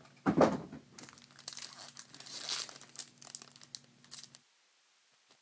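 A foil pack crinkles as it is torn open.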